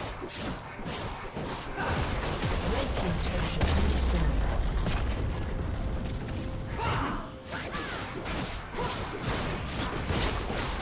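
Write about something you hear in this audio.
Spells crackle and whoosh as game characters fight.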